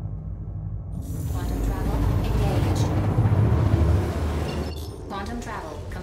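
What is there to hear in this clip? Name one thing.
A loud whooshing roar swells and fades.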